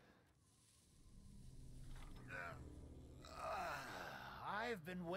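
Wind blows through a snowstorm.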